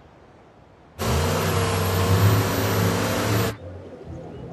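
A heavy truck engine roars loudly close by.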